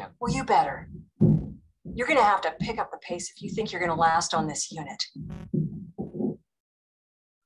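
A middle-aged woman speaks in a strained, upset voice.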